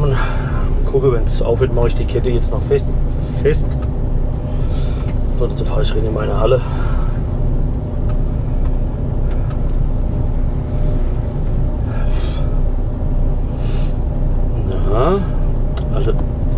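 A man talks briefly nearby.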